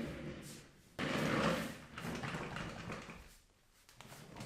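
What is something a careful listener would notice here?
Chair casters roll across a wooden floor.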